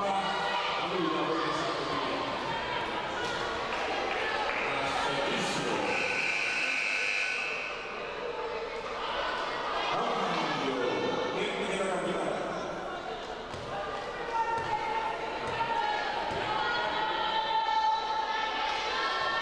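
Voices of players and spectators echo around a large indoor sports hall.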